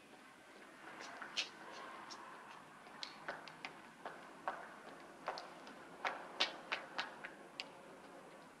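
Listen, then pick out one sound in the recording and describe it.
High heels click on pavement at a steady walking pace.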